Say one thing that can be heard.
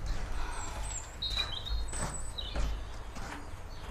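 Footsteps walk across a floor.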